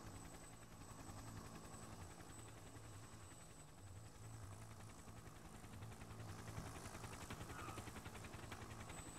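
A helicopter engine drones low and steadily.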